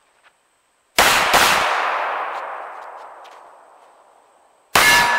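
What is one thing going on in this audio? A handgun fires several sharp, loud shots outdoors, each followed by a long fading echo.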